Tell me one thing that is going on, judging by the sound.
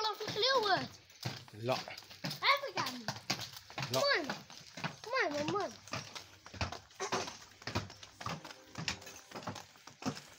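Horse hooves clop on hard ground at a walk.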